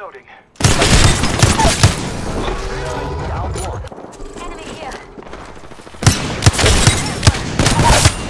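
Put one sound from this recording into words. Gunfire bursts out in rapid loud shots.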